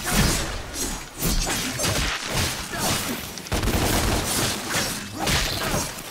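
A sword slashes and strikes enemies with sharp metallic hits.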